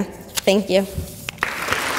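A young woman speaks briefly and softly into a microphone in an echoing room.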